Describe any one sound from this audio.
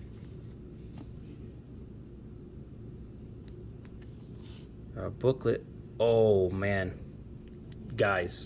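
A card wrapper crinkles and rustles in hands.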